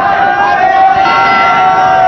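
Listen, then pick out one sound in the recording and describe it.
A large bell rings loudly.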